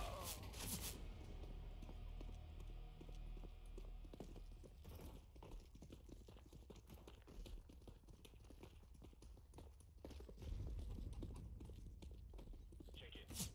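Footsteps patter quickly on stone and grass.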